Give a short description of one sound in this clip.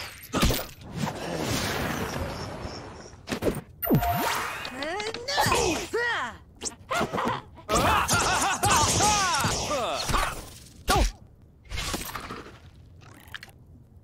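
Video game battle effects clash and whoosh.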